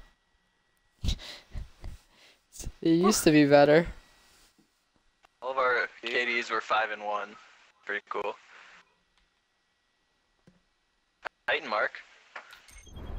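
A young man talks casually into a headset microphone.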